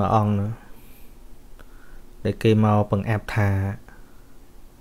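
A man speaks in a slow, drawn-out voice.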